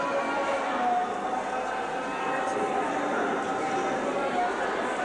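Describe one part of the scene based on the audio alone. A crowd of men and women murmurs and talks nearby.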